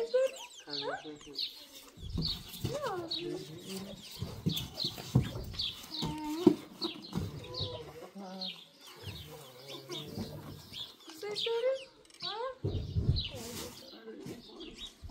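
A young child talks and babbles nearby.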